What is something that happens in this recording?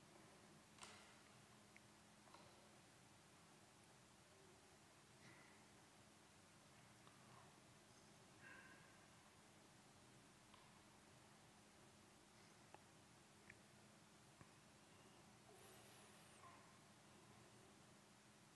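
A man speaks softly and slowly into a microphone, with long pauses.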